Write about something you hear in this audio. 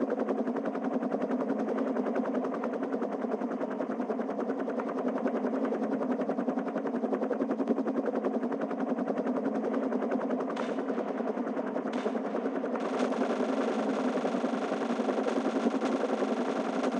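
Helicopter rotor blades thump rapidly and steadily.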